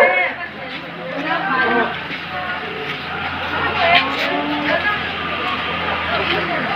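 A crowd of men, women and children chatter and call out outdoors.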